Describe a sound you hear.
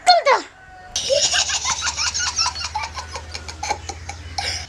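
A young boy laughs and giggles close by.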